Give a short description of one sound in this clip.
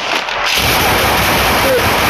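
A gunshot fires.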